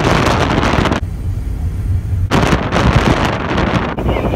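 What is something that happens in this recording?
Wind rushes past a moving car.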